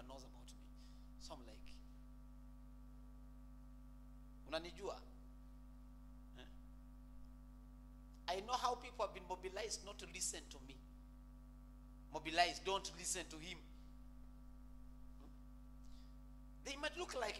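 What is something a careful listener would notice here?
A man preaches with animation into a microphone, with long pauses.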